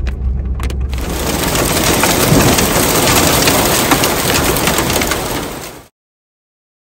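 Hail pours down heavily with a steady roar.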